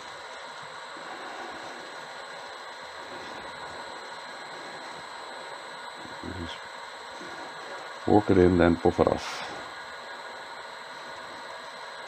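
A cloth rubs softly against a spinning rod.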